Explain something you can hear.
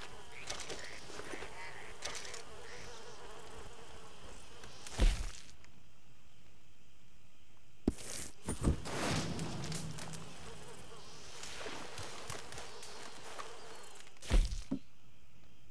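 A campfire crackles close by.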